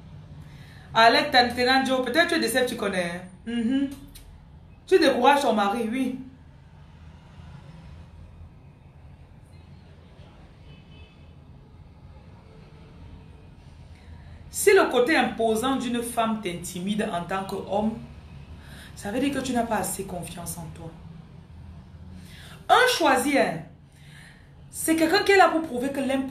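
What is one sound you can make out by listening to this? A woman speaks close to the microphone in short bursts, with pauses.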